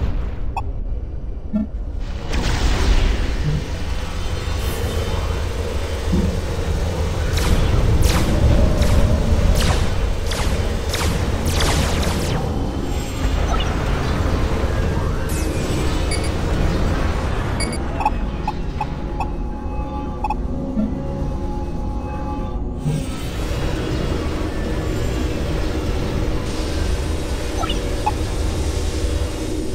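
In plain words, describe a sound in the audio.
Laser weapons zap and crackle in a game battle.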